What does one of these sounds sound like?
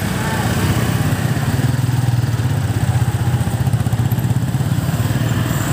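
Other motorbikes hum past along a busy street.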